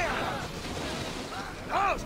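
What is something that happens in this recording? A fiery blast booms across the water.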